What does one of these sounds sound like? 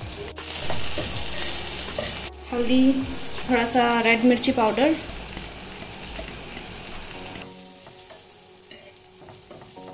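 A fork scrapes and stirs against a pan.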